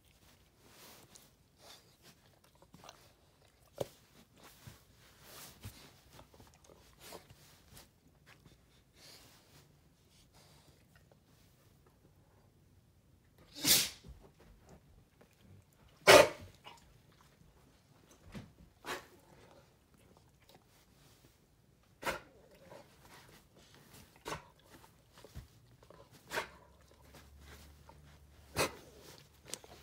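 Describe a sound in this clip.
A dog sniffs and snuffles close by.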